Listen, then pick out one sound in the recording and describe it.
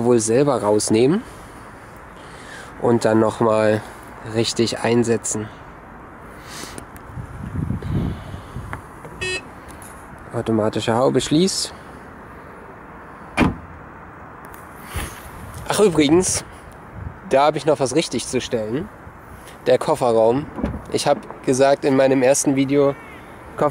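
A young man talks calmly and close by, in short bursts.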